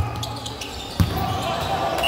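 A ball is kicked sharply on an indoor court.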